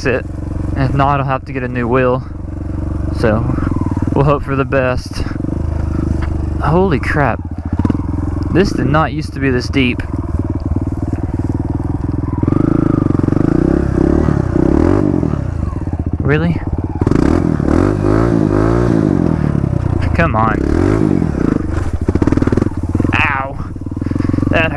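A dirt bike engine idles and revs up sharply in short bursts, close by.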